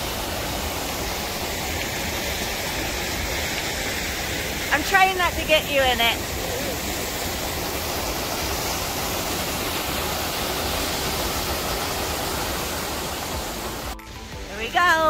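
Waterfalls rush and splash steadily outdoors.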